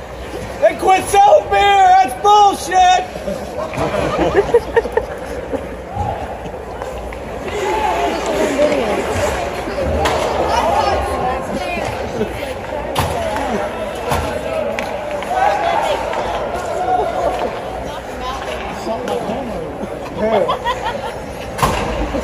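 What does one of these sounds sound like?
A puck knocks sharply against the boards.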